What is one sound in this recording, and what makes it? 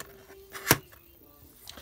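A metal watch bracelet clinks against a hard surface as it is picked up.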